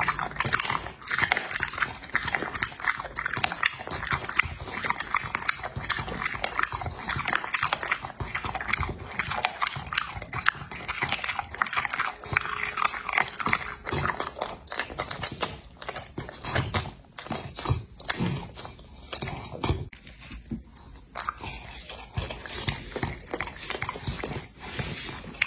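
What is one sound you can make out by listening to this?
A dog licks and smacks its lips wetly, close by.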